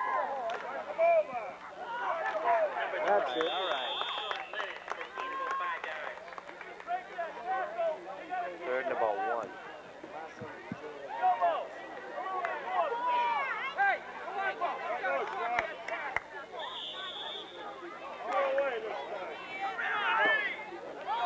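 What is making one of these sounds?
A crowd of men and women talk and shout nearby outdoors.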